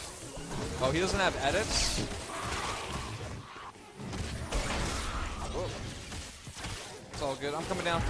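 A young man talks with animation.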